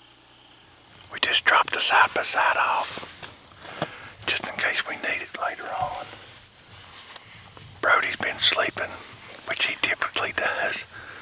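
A man talks close to the microphone with animation.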